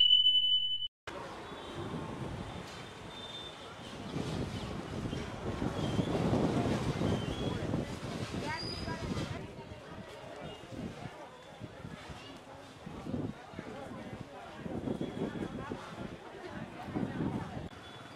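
A busy street bustles with the murmur of many voices.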